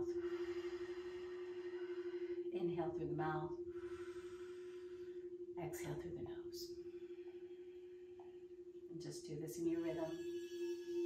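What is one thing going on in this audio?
A singing bowl hums with a steady ringing tone.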